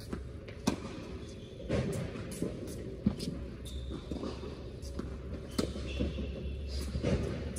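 A tennis ball is struck with a racket, echoing in a large indoor hall.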